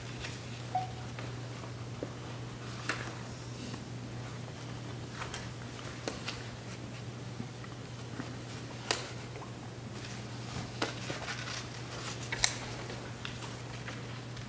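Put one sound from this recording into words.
Papers rustle and shuffle on a table.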